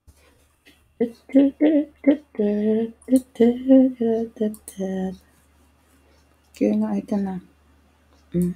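A young woman speaks calmly through an online call.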